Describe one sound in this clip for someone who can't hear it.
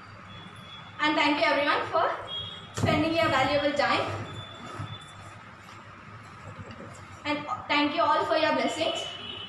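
A young girl speaks calmly and clearly close by, in short phrases.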